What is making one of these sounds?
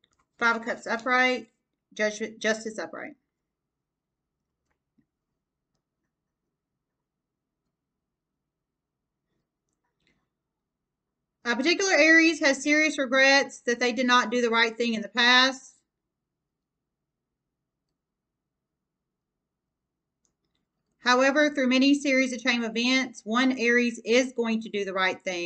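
A woman speaks calmly close by, in short bursts with pauses.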